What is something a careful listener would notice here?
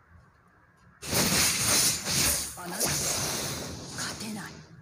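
Fantasy game attack effects whoosh and crackle loudly.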